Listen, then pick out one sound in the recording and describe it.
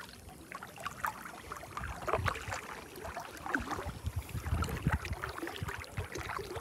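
Small waves lap and splash.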